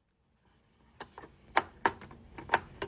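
Clothes thump softly against the machine's drum.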